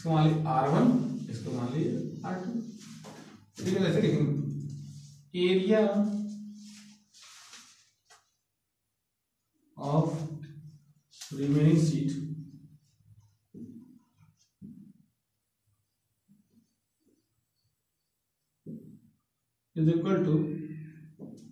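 A man speaks calmly and clearly nearby, with pauses.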